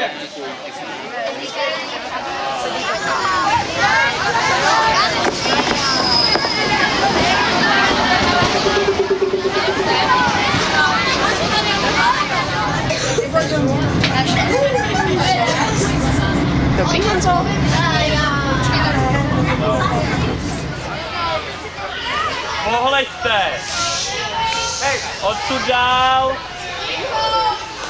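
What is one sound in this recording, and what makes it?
A crowd of children chatter and shout nearby.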